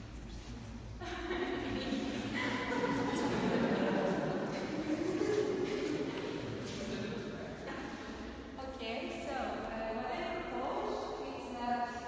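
A crowd of people murmur and chatter in an echoing room.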